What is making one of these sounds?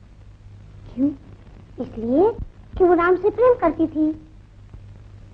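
A young girl speaks up in a high voice.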